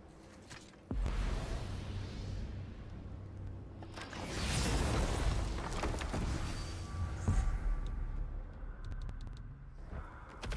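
A deep magical whoosh swells and rumbles.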